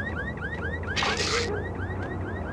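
A heavy wooden door swings open.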